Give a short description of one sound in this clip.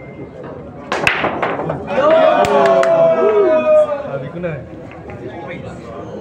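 Billiard balls clack against one another and roll across the table.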